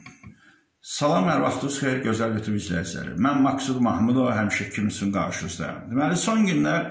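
A middle-aged man talks calmly and close up.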